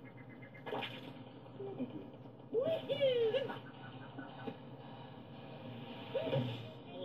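Video game sound effects play from a television speaker.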